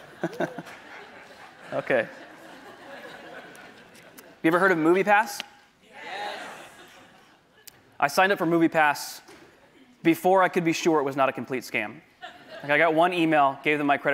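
A man speaks calmly into a microphone in a large echoing hall, pausing between phrases.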